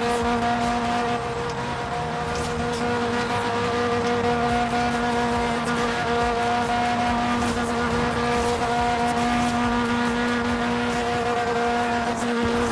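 A small car's engine drones steadily at high speed.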